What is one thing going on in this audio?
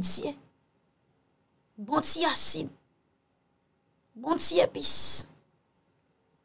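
A young woman speaks close to a microphone in short, emotional bursts.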